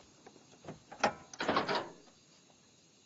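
A car bonnet creaks and clunks as it is lifted open.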